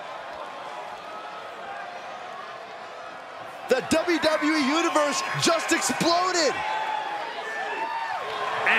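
A large crowd cheers and murmurs in a big arena.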